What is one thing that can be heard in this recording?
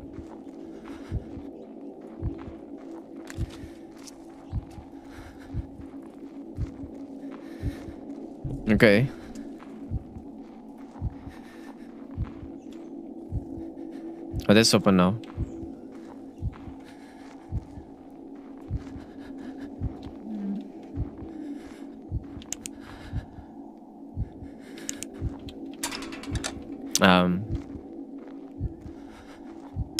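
Footsteps tread steadily along a dirt path.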